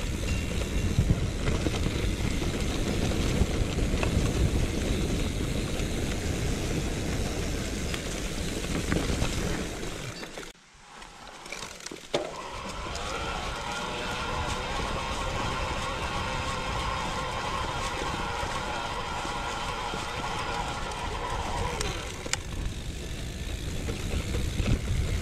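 Bicycle tyres roll and rattle over a bumpy grass track.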